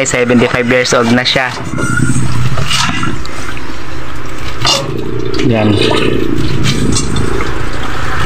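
Dishes clink and clatter as they are washed by hand.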